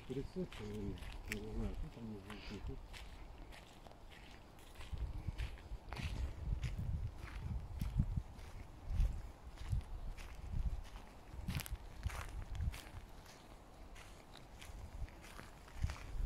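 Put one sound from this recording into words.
Footsteps crunch steadily on a dry dirt path outdoors.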